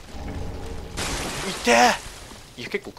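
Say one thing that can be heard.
A sudden gush of blood bursts out with a wet splatter.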